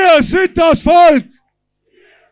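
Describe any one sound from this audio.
A crowd chants loudly outdoors.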